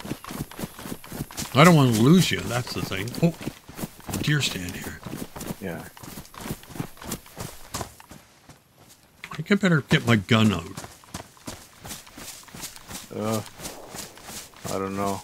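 Footsteps patter quickly over grass and dry leaves.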